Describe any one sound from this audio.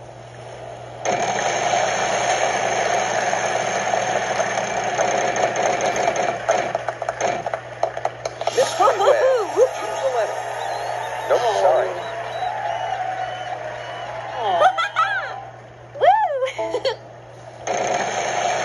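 Cheerful game music plays from a television speaker.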